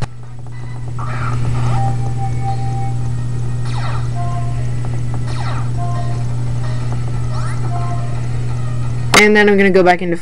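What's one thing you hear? A handheld video game plays electronic chimes and sound effects.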